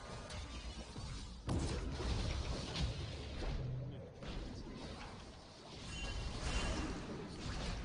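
Video game combat effects whoosh, clash and burst.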